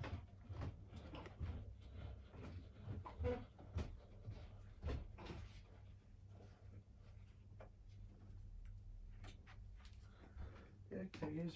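Wooden panels knock and clatter close by.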